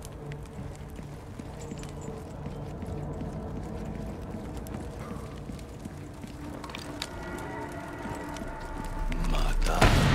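Footsteps scuff along a stone path.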